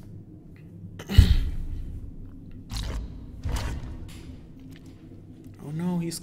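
A sword plunges into thick liquid with a splash.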